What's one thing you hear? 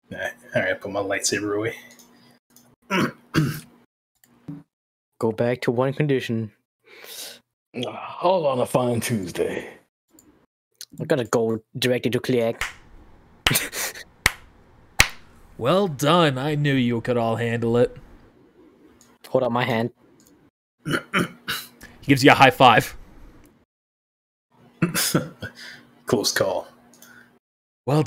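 Several men talk and laugh with animation over an online call.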